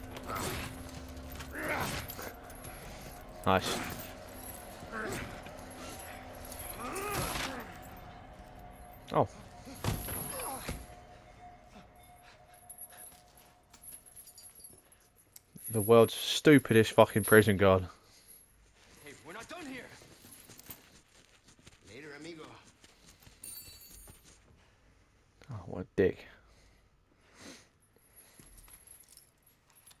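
Heavy chains clank and rattle.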